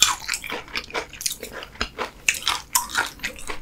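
Chopsticks clink against a dish.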